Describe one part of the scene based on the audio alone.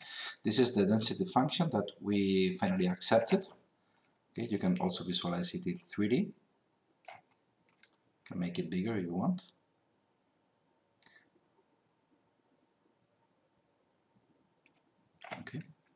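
A man talks calmly and clearly into a close microphone, in short bursts with pauses.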